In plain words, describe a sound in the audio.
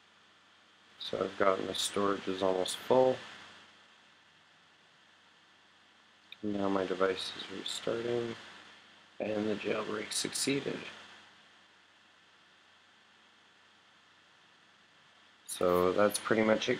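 A young man talks casually into a nearby microphone, in short bursts with pauses.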